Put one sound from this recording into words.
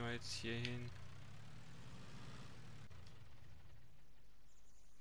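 A forklift engine idles with a low rumble.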